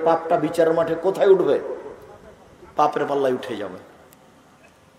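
A man preaches forcefully into a microphone, heard through loudspeakers with echo.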